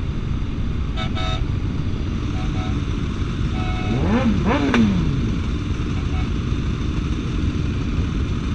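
Motorcycle engines idle and rumble close by.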